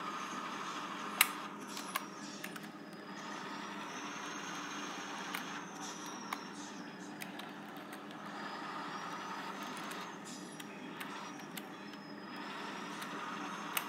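A game's engine sound drones steadily from small laptop speakers.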